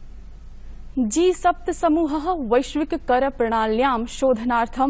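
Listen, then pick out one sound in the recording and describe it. A young woman reads out calmly into a microphone.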